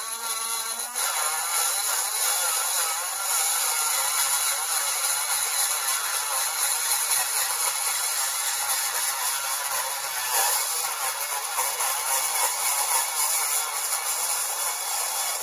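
A rotary tool whines steadily as it grinds metal.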